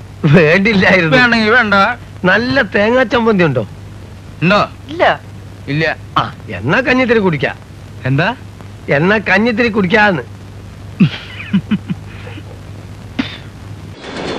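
Men talk with animation, close by.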